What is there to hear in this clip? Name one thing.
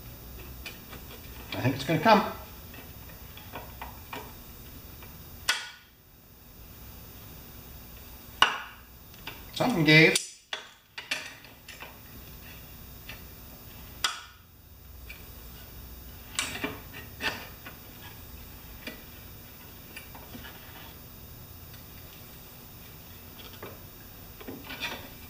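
A metal wrench clicks and clinks against an engine.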